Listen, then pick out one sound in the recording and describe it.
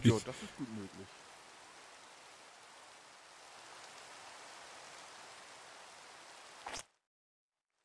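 Rain patters down steadily.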